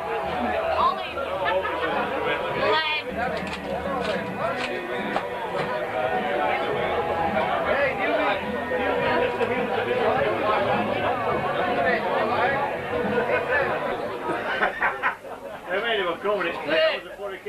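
A crowd of men and women chatters and laughs.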